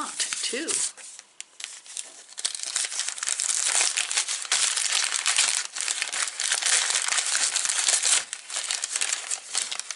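Something crinkles and rustles in a pair of hands close by.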